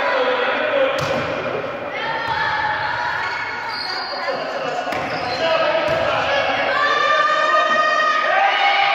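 A volleyball is hit with sharp smacks.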